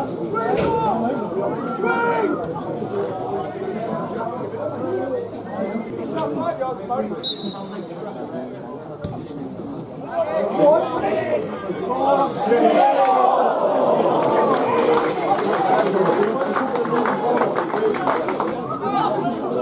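Spectators talk and murmur close by, outdoors.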